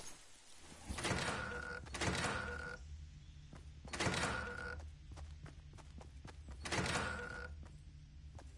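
A pickaxe strikes wood with sharp, ringing knocks.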